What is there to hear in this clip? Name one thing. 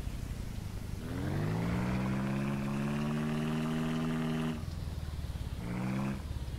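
A small engine revs up to a steady hum, then drops back, and briefly revs again.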